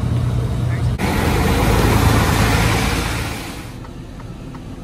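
A passing truck roars by close alongside.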